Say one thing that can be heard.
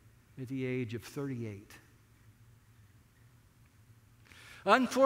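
A middle-aged man speaks with animation through a microphone.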